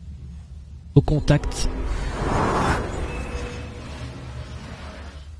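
A magical spell whooshes and shimmers.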